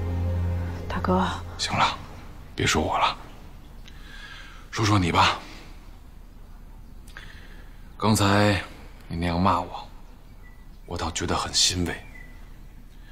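A young woman speaks in short, tense phrases close by.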